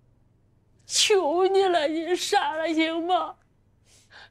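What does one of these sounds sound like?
A woman pleads tearfully, close by.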